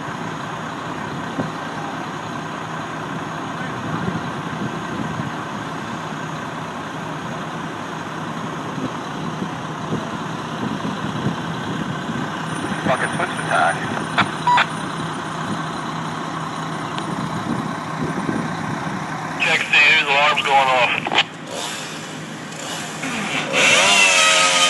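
A fire engine's motor idles with a steady low rumble.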